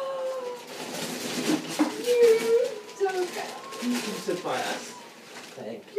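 Paper rustles as a gift is unwrapped.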